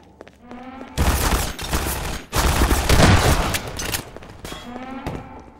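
Gunshots crack in rapid bursts with loud echoes.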